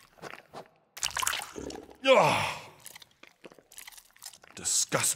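A man speaks with surprise, then groans.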